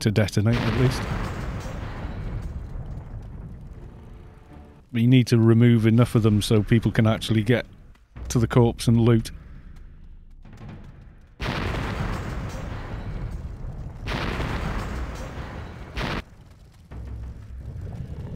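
Magical spell effects whoosh and burst loudly.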